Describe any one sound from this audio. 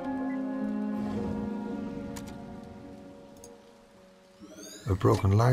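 Soft game music plays and slowly fades.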